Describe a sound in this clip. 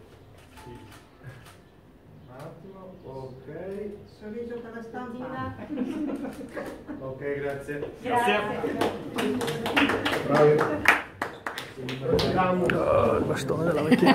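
Several men and women chatter together in a room with a slight echo.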